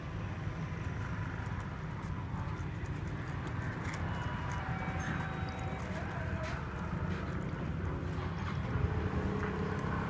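Ice cubes crackle and clink as liquid runs over them.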